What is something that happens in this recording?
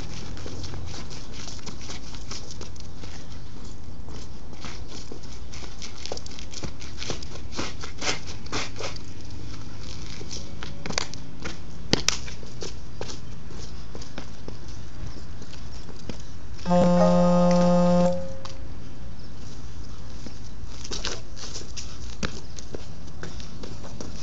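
Sneakers scuff and tap on pavement.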